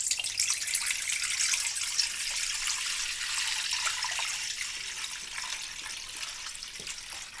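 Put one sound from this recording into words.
Water pours and splashes into a stainless steel bowl.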